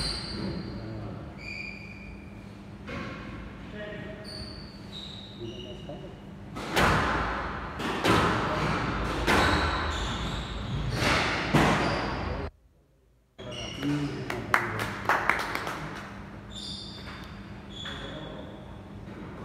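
Rubber shoes squeak sharply on a wooden floor.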